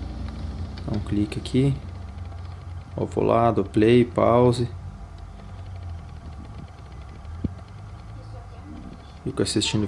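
A middle-aged man speaks calmly through a television's speaker.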